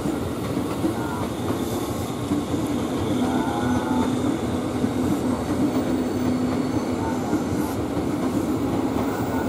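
A train's motors hum steadily as it rolls by.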